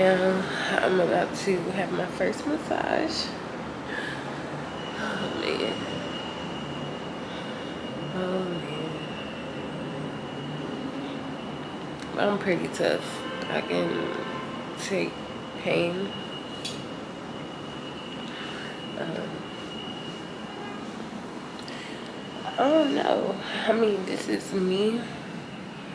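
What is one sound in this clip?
A woman speaks close to a microphone in a lively, chatty way.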